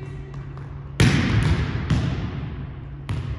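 A volleyball is spiked with a loud slap that echoes through a large hall.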